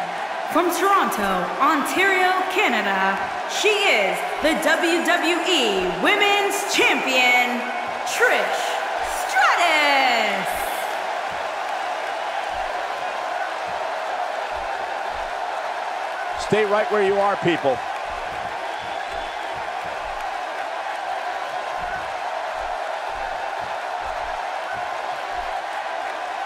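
A large crowd murmurs and cheers steadily in a big echoing arena.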